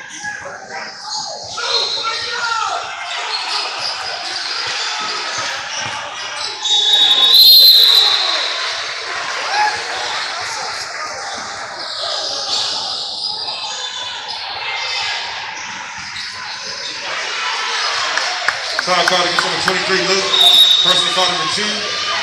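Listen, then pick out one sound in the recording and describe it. A crowd of people chatters and calls out in a large echoing gym.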